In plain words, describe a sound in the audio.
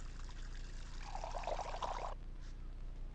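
Water pours from a kettle.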